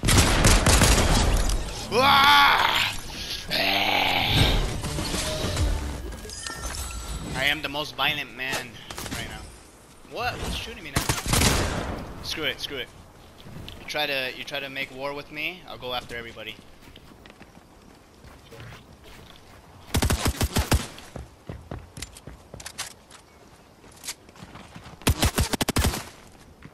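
Shotgun blasts boom in quick bursts.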